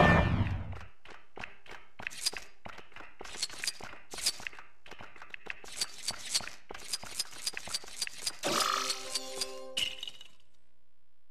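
Coins clink and jingle rapidly as they are collected.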